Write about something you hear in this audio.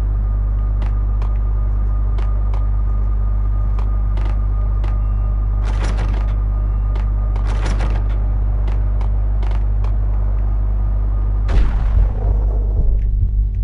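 Footsteps tread slowly on hard ground.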